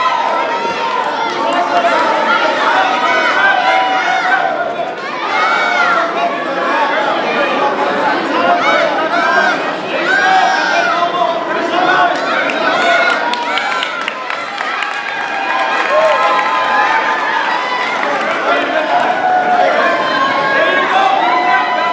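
A crowd of men and women shout and cheer loudly in an echoing hall.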